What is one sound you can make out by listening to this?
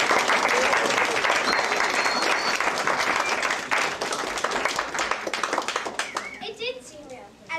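An audience applauds and the clapping slowly fades.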